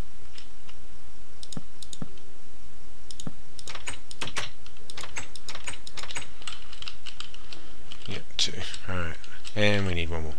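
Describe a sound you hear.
Blocks are placed with short soft clicks.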